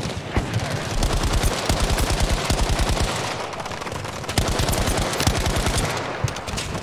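A machine gun fires rapid bursts close by.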